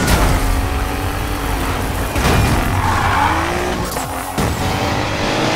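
A car engine roars at high revs.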